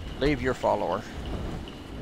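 A young man speaks briefly and with animation into a microphone.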